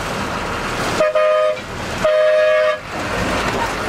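A bus horn honks twice.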